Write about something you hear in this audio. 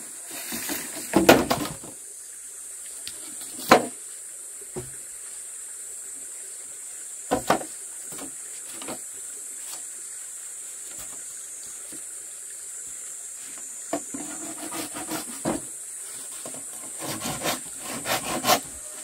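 Bamboo poles knock and clatter against each other.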